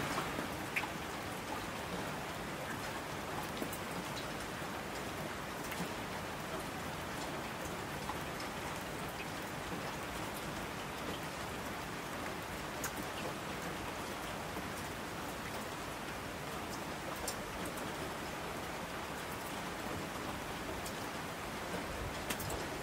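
Heavy rain pours down steadily outdoors.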